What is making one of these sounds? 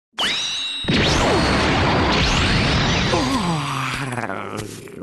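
A bright magical blast whooshes and roars.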